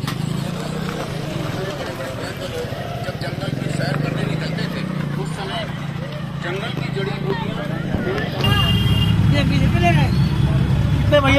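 A crowd of men and women talk and call out nearby, outdoors.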